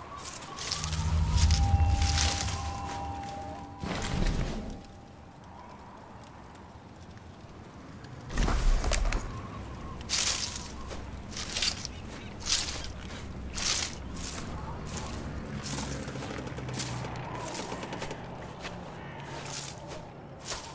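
Leaves rustle and swish as someone crawls through plants.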